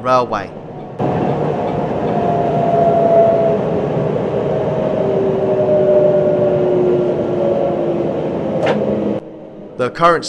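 A train rumbles along the rails.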